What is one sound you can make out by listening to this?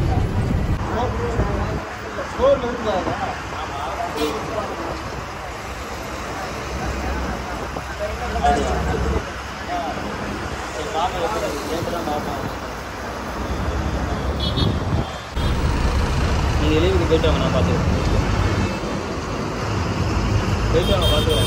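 Traffic roars past on a busy road outdoors.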